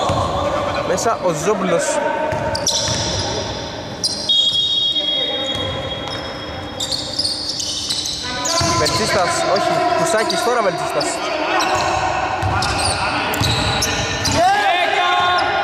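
Young men call out to each other across an echoing hall.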